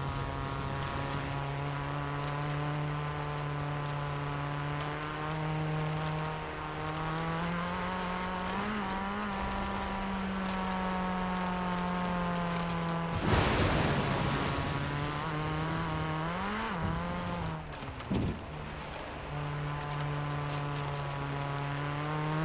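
A car engine hums steadily and rises and falls in pitch as it speeds up and shifts gears.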